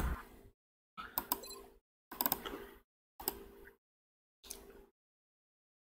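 Soft game menu clicks and beeps sound.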